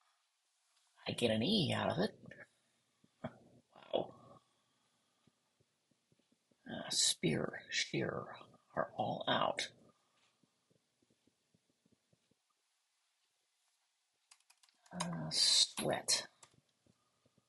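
A young woman talks thoughtfully into a microphone, close by.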